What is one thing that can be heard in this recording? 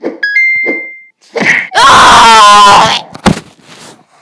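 A game sound effect thuds.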